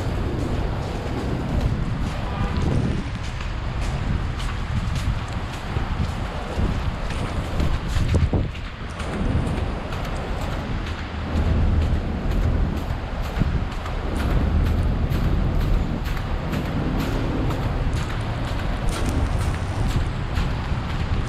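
Footsteps tread on a wet pavement close by.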